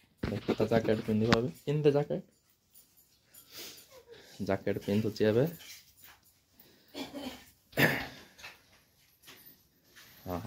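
A jacket rustles as a boy pulls it on.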